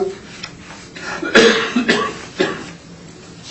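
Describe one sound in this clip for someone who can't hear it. Papers rustle and shuffle on a table.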